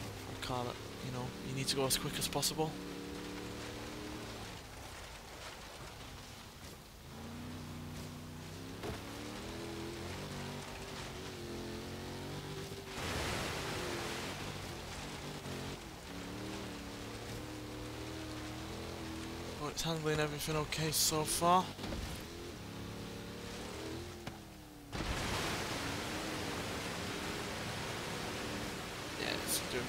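A truck engine roars and revs up and down.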